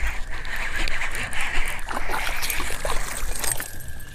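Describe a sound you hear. Water splashes as a fish is pulled to the surface.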